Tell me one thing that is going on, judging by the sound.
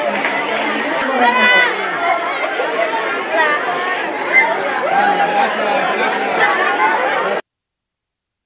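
Children shout and cheer excitedly close by.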